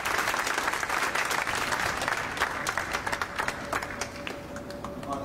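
A crowd applauds outdoors and then dies away.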